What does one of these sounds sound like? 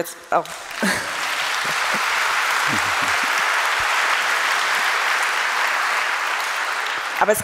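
A large audience applauds in an echoing hall.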